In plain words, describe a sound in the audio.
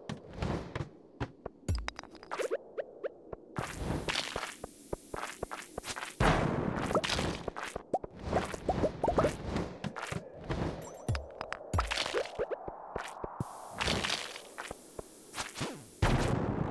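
A video game character swings a weapon at cave monsters.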